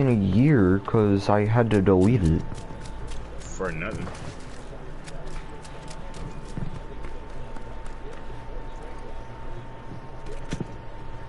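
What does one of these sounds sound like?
Footsteps crunch quickly on dirt and gravel.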